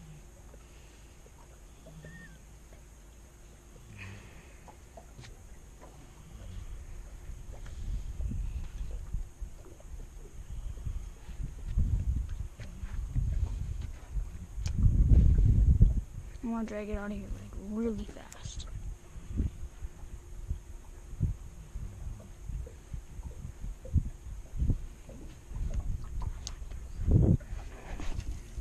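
Water laps softly against a small boat's hull.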